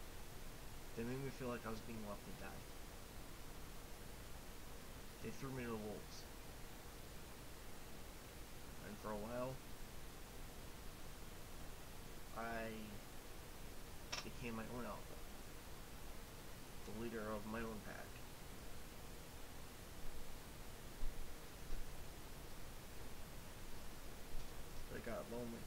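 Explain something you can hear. A young man speaks calmly in short bursts close to a microphone, with long pauses.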